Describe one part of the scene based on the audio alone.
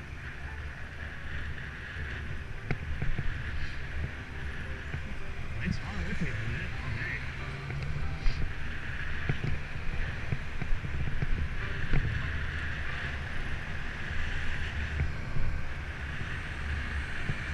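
Wind rushes over a microphone on a moving bicycle.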